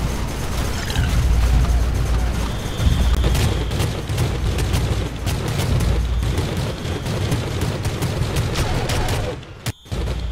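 A submachine gun fires rapid, booming bursts.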